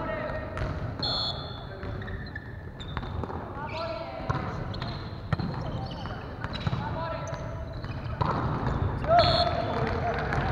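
Shoes squeak on a wooden floor.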